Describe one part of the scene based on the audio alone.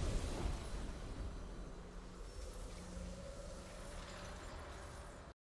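A game's victory music plays with a swelling orchestral tone.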